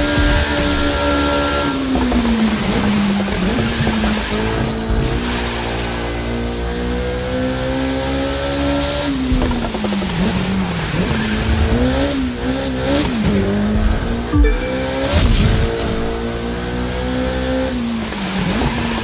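A racing car engine revs high and drops as the car brakes and accelerates.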